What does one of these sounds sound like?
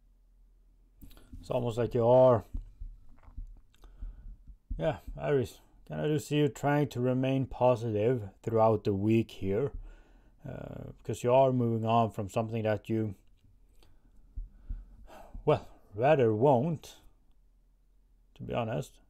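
A man speaks calmly and closely into a microphone.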